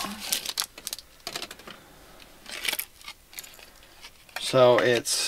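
Cardboard packaging rustles and crinkles in hands.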